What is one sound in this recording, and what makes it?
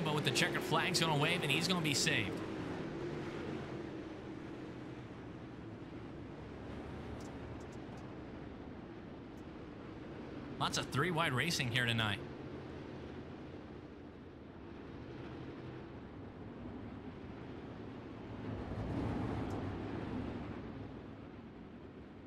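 Racing car engines roar steadily.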